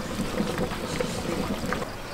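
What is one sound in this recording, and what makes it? Broth splashes as it is poured from a ladle into a bowl.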